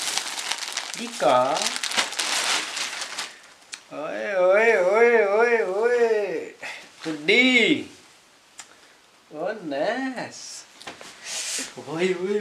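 A young man sings in a wavering, playful voice nearby.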